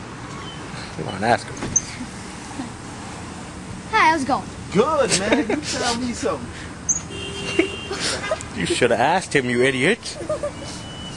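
A young man talks and laughs close by, in bursts.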